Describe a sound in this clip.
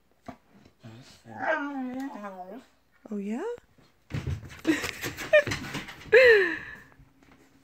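A young dog whines and yelps in high, wavering cries.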